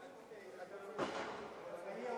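A ball is kicked with a sharp thud in an echoing hall.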